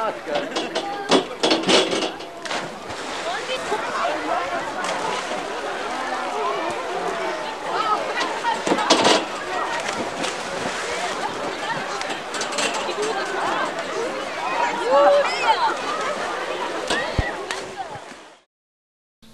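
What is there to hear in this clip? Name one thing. A crowd of children and adults shouts and chatters outdoors.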